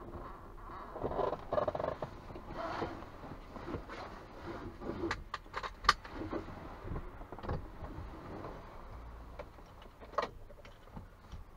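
Clothing rustles as a man climbs into a car seat.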